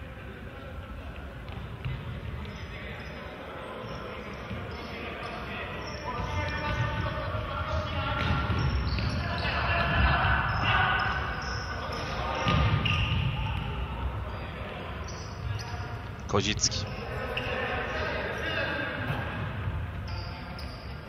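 Spectators murmur and cheer in the hall.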